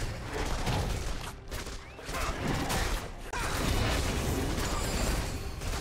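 Magic spells crackle and burst during a video game battle.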